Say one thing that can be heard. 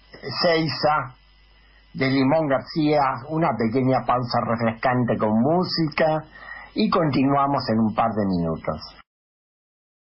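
An elderly man speaks calmly and with good humour into a close microphone.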